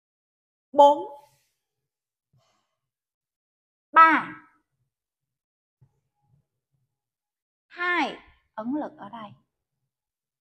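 A woman calls out loudly in short phrases.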